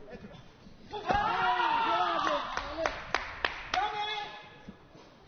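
A crowd cheers and claps loudly.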